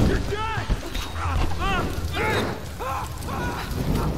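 Flames crackle and roar.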